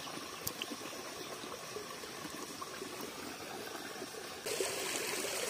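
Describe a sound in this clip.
Water ripples and splashes around a hand in a shallow stream.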